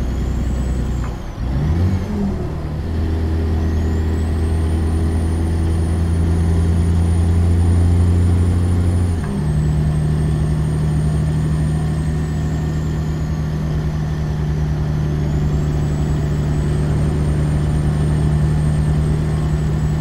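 Tyres hum on a highway.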